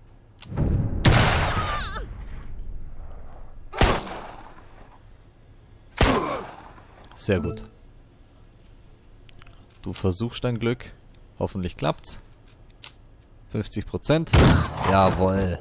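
Gunshots ring out in sharp, loud bangs.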